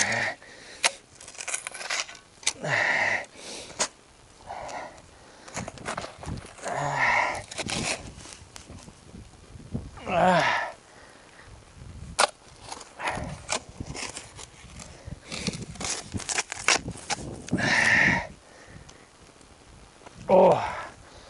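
A shovel scrapes and chops into hard soil.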